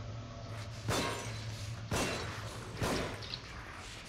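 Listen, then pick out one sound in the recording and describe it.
A pistol fires sharp shots close by.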